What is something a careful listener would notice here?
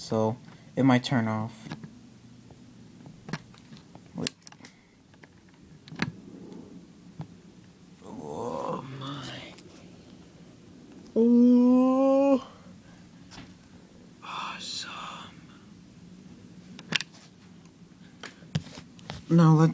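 A plug clicks in and out of a jack.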